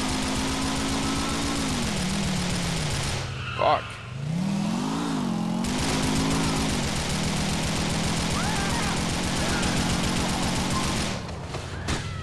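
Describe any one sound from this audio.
A motorcycle engine drones and revs up and down.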